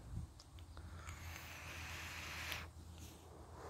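A man draws a long breath through a vape.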